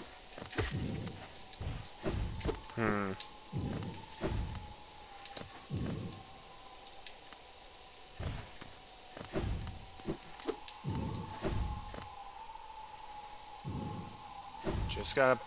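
Soft footsteps thud on the ground.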